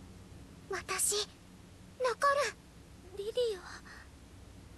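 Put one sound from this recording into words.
A girl speaks in short, softly voiced phrases.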